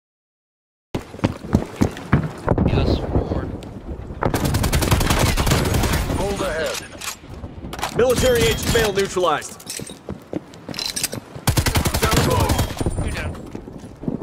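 Gunfire crackles in rapid bursts from a video game.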